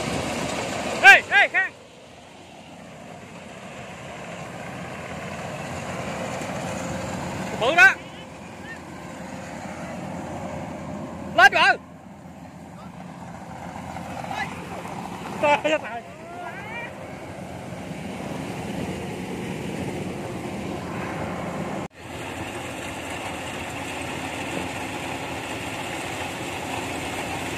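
A combine harvester engine rumbles steadily nearby.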